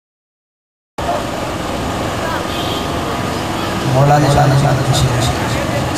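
A young man sings into a microphone, heard through loudspeakers.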